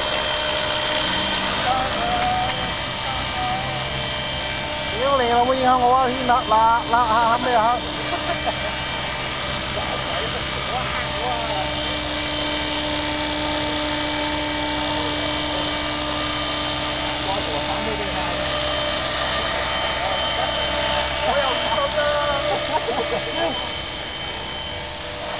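A model helicopter's engine whines steadily as its rotor whirs.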